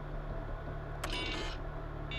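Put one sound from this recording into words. A computer terminal sounds a short harsh error tone.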